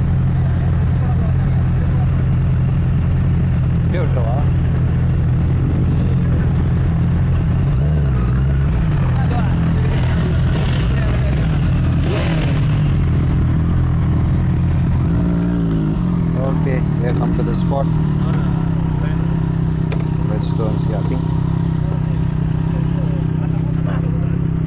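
A motorcycle engine idles close by with a steady low rumble.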